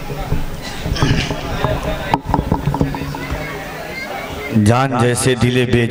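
A man sings loudly through a microphone and loudspeakers, his voice echoing.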